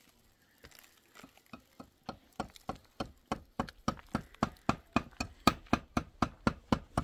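A hammer taps on a concrete block in quick, steady blows.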